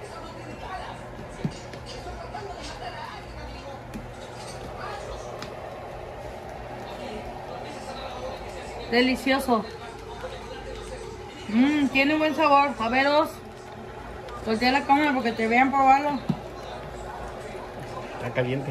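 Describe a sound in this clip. A ladle stirs soup in a pot.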